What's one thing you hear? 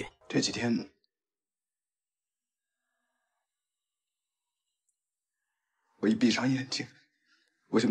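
A man speaks calmly and seriously, close by.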